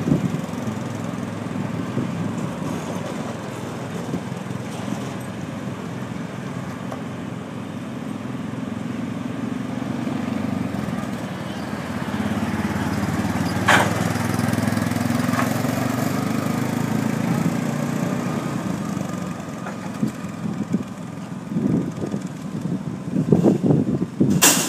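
A utility vehicle engine drones as it drives on asphalt, passes close by and pulls away.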